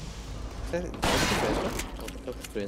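A shotgun fires a single loud blast.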